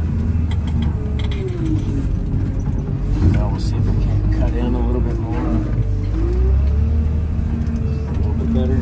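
A hydraulic whine rises and falls as the machine works.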